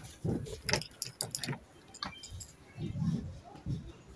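A caravan door clicks and swings open.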